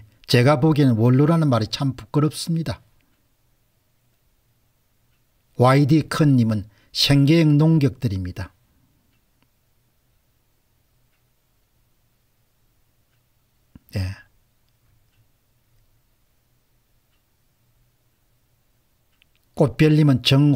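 A middle-aged man speaks calmly into a close microphone, with long pauses.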